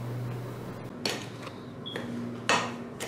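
A fork clinks and scrapes against a bowl while mixing.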